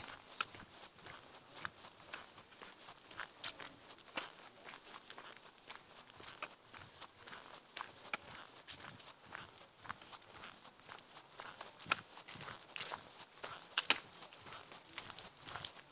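Footsteps crunch on a dirt path close by.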